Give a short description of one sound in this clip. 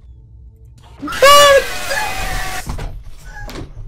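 A young woman screams loudly and suddenly.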